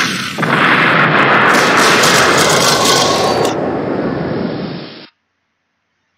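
A loud explosion booms and rumbles, then cuts off.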